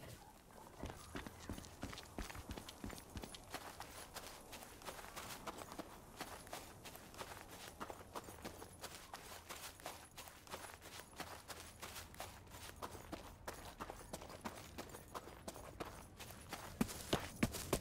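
Footsteps tread steadily over grass and dirt.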